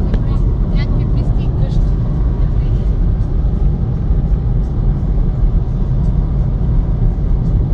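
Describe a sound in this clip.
A car drives along an asphalt road, its engine and road rumble heard from inside the car.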